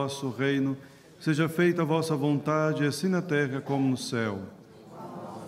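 A man chants loudly through a microphone in an echoing hall.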